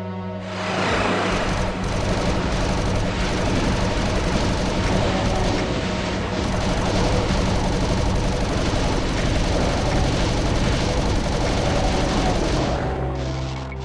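A plasma gun fires in rapid buzzing bursts.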